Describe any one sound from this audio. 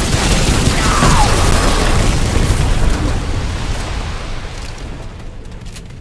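A loud blast roars and slowly fades away.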